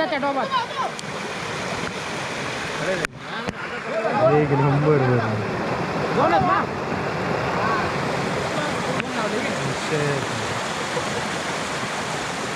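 Muddy water rushes loudly over rocks.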